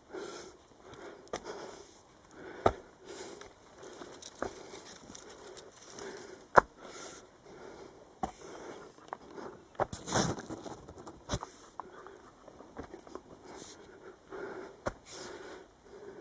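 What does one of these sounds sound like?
Leaves rustle as a walker brushes past plants.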